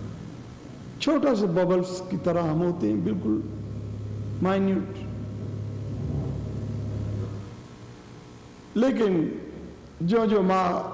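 An elderly man chants slowly and melodically into a microphone, with pauses between lines.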